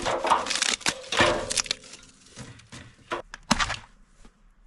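Dry wood bark rustles and crackles in a hand.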